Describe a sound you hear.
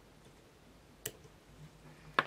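Small scissors snip a thread.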